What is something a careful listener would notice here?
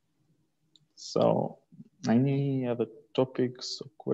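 A young man speaks casually over an online call.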